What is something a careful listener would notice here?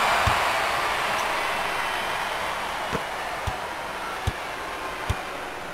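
A basketball bounces on a wooden court with dull thuds.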